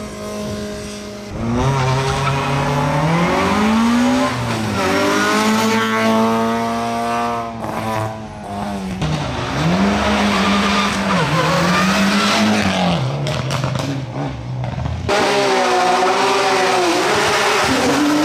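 A rally car engine revs hard and roars loudly up and down in pitch.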